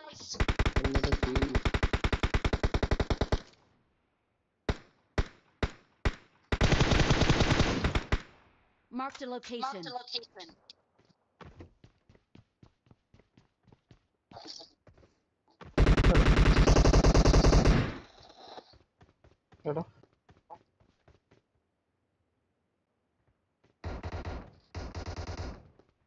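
Rapid gunfire rattles in loud bursts.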